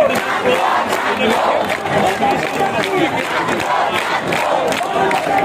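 A large crowd of young men and women chants loudly outdoors.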